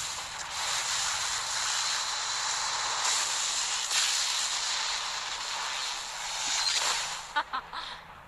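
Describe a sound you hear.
Electric magic crackles and hisses loudly.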